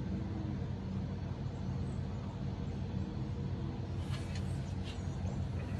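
A man sips from a mug.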